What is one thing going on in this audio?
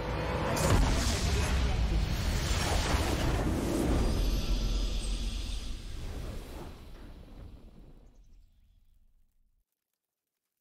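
A booming game victory fanfare plays, then fades away.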